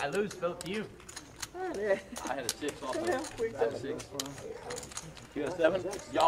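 Poker chips clack together as they are stacked.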